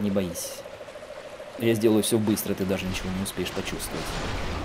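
A huge beast roars and groans loudly.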